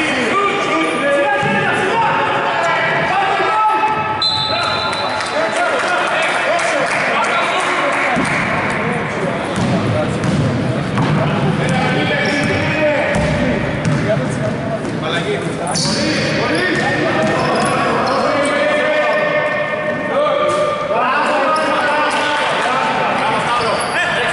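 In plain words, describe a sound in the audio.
Players shout to each other in a large echoing gym.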